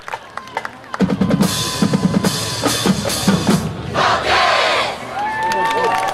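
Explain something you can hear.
A marching band plays a loud burst of brass and drums.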